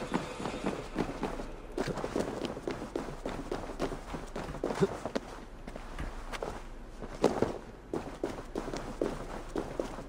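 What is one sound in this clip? Footsteps thud on wooden planks and stone steps.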